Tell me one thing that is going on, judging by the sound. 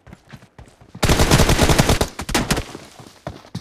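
Rapid bursts of gunfire crack close by.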